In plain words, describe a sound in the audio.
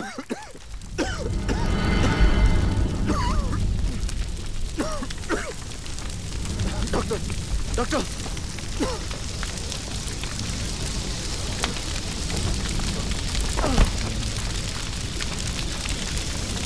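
Fire roars and crackles.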